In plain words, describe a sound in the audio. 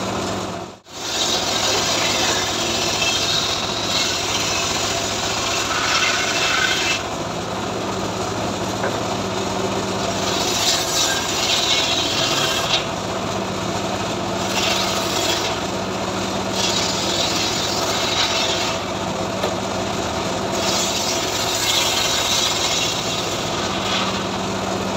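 A circular saw whines as it cuts through wood in repeated bursts.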